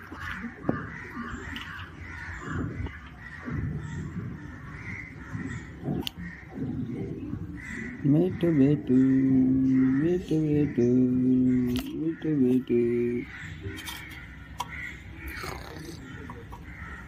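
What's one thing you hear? A parrot chatters and squawks softly up close.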